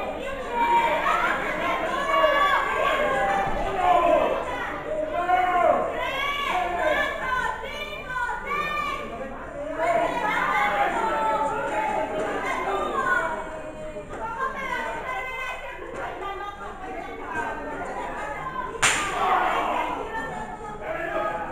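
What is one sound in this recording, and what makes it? A crowd of spectators chatters and shouts in an echoing hall.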